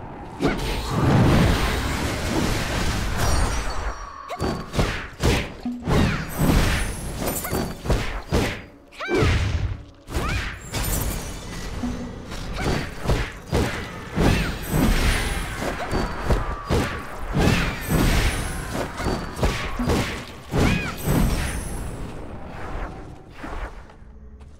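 Weapons slash and strike monsters in quick bursts.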